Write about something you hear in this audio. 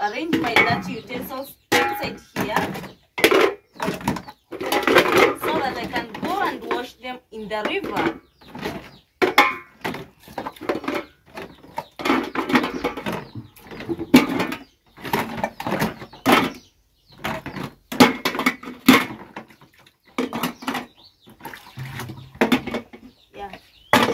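Water splashes as dishes are washed in a basin.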